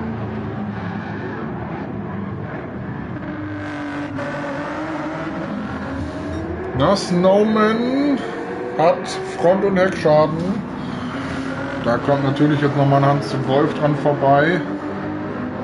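A race car engine roars and revs up and down through gear changes.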